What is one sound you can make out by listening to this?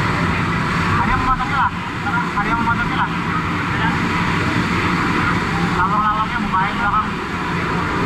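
Men call out to each other close by.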